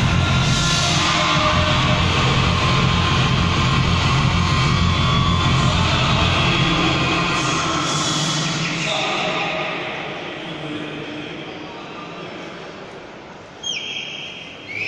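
A large crowd murmurs in the hall.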